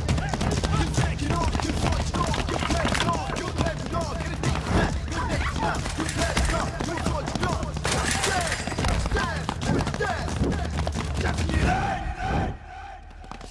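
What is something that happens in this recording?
A crowd of men shouts angrily nearby.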